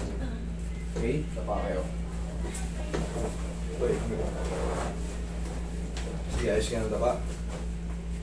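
A man talks nearby in short bursts.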